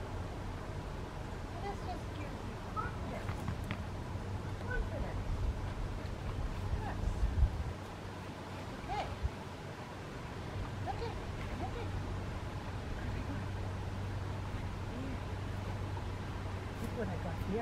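A woman talks to a dog in a calm voice some distance away.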